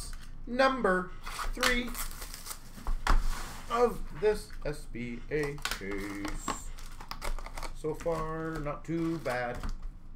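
A plastic-wrapped card box rustles and crinkles as hands open it.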